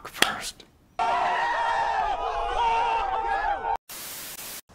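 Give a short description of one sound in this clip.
A young man screams loudly.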